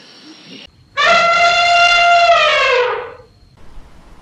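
An elephant trumpets loudly.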